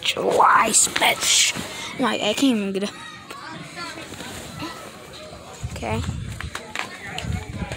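A young boy talks close to a phone microphone.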